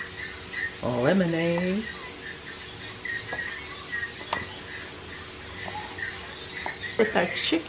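A wooden spoon stirs fruit slices in a glass pitcher of water, knocking lightly against the glass.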